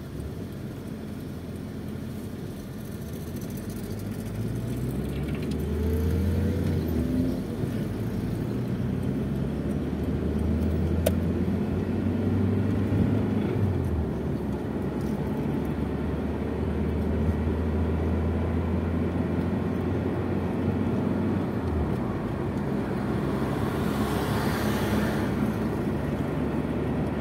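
Tyres roll over the road with a steady rumble.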